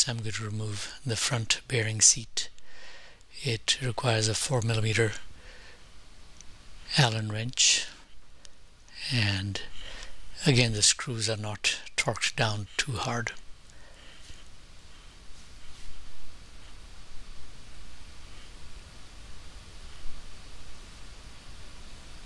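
A hex key scrapes and ticks as it turns a small screw in metal.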